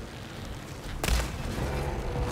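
A bowstring twangs as an arrow is loosed.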